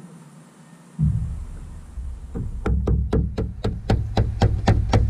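A rubber mallet taps repeatedly.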